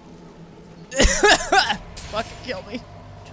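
A heavy sword strikes with a loud burst.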